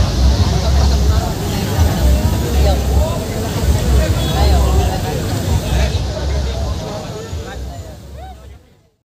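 Loud music with heavy thumping bass booms from large loudspeakers outdoors.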